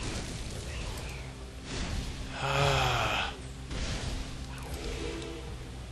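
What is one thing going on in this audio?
Weapons clash as a fight breaks out.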